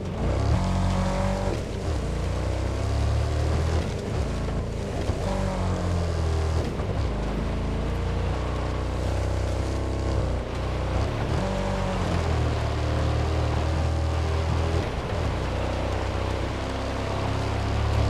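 A truck engine rumbles as the truck drives.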